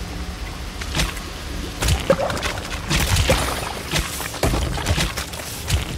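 A small creature patters along with soft squelchy steps.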